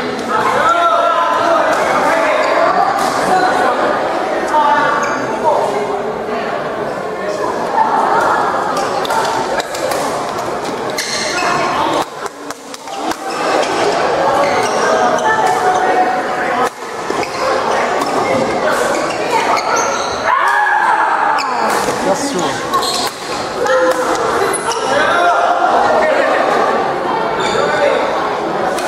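Badminton rackets strike a shuttlecock back and forth.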